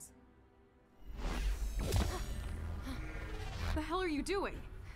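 A magical energy surges with a deep rumbling whoosh.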